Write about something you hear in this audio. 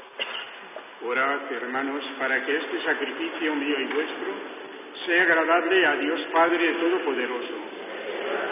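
A man chants slowly at a distance, with echo around him.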